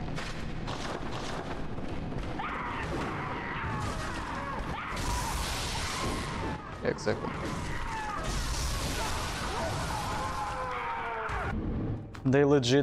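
Weapons clash and monsters screech.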